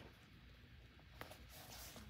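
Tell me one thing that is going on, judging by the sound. Paper rustles softly as hands smooth a page.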